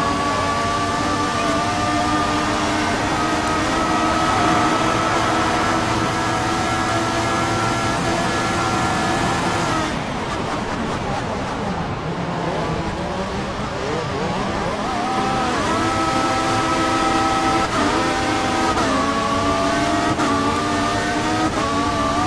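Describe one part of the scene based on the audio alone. A racing car engine screams at high revs, dropping in pitch as it slows for corners and rising again as it speeds up.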